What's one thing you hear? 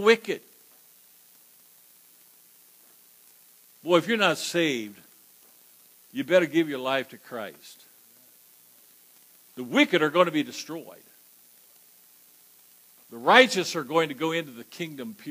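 An elderly man preaches emphatically through a microphone, in bursts separated by long pauses.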